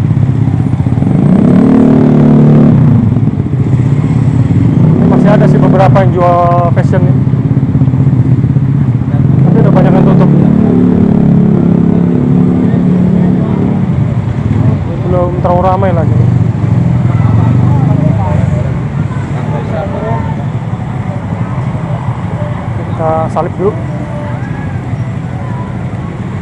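Traffic rumbles steadily nearby on a busy street outdoors.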